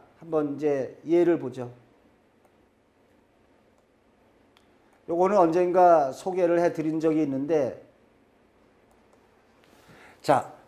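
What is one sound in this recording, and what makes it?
A man speaks calmly, as if lecturing, heard through a microphone.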